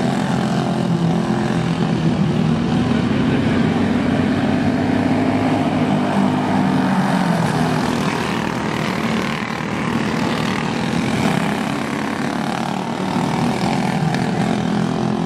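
Several small racing kart engines buzz and whine loudly outdoors, rising and falling in pitch.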